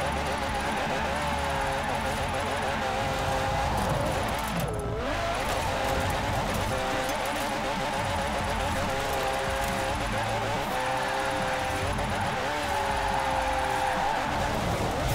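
Tyres squeal as a car drifts.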